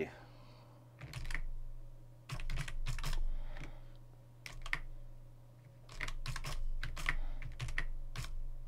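Keyboard keys click as someone types in short bursts.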